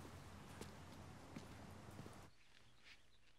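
Footsteps tap on pavement outdoors.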